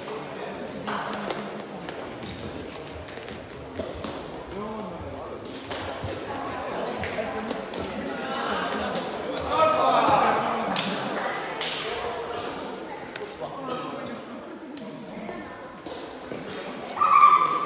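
Sports shoes squeak and thud on the hall floor.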